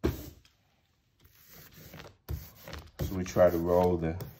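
A hand rubs softly across paper.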